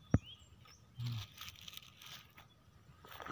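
A hand rustles through dry leaves and grass.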